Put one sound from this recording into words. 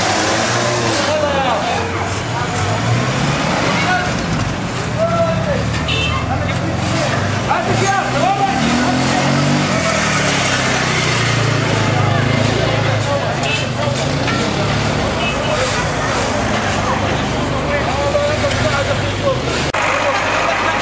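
Car engines hum as vehicles pass on a street.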